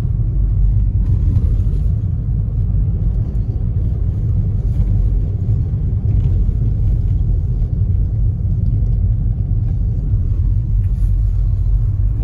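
A car engine rumbles low and steady inside a moving car.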